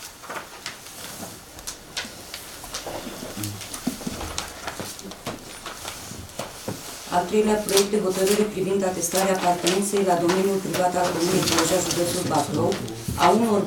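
Paper rustles softly in hands.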